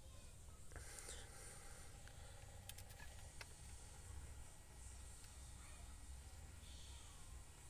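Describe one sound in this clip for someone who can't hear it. Metal probes tap lightly against a small circuit board.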